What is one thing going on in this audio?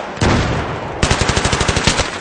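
A rifle fires a rapid burst close by.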